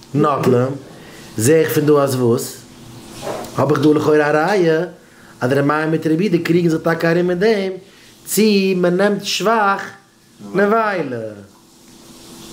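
A man speaks up close with animation, in a melodic chanting tone.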